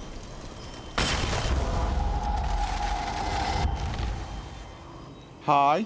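A magic spell bursts with a loud whoosh and a low rumbling roar that slowly fades.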